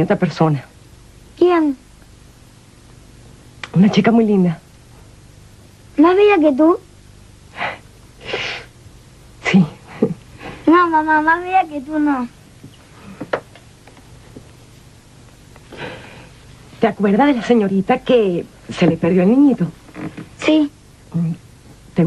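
A young boy speaks quietly.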